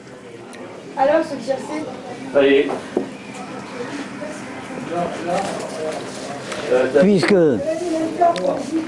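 An elderly man reads aloud nearby.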